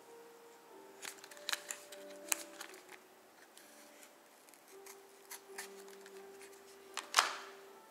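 A pocket knife blade clicks as it is pried open.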